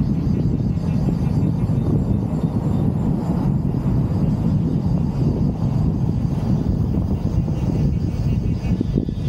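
Wind rushes loudly past an open car.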